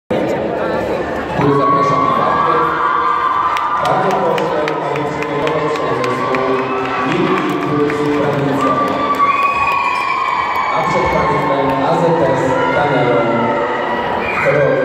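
Music plays loudly over loudspeakers in a large echoing hall.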